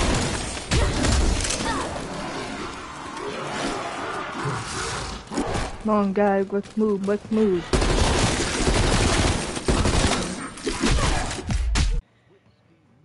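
Rapid gunfire rattles and booms in loud bursts.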